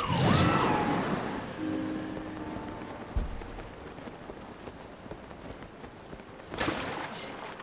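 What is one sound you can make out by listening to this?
Wind rushes past during a glide.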